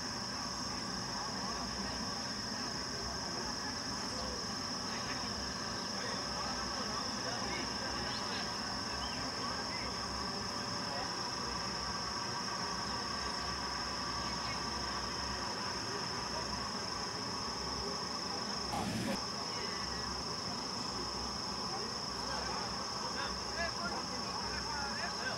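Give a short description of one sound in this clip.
A crowd of people murmurs in the distance outdoors.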